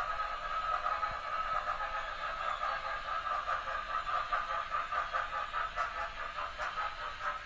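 A model steam locomotive's sound system chuffs rhythmically.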